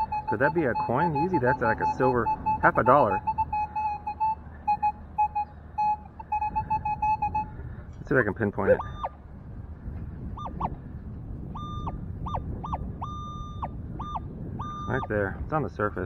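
A metal detector hums and beeps with a steady tone.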